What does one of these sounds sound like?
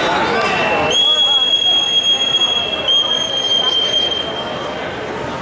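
A referee's whistle blows a long, steady blast.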